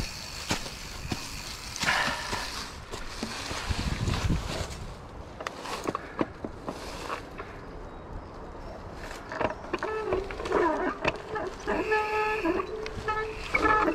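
Bicycle tyres roll and crunch over a dirt trail covered in dry leaves.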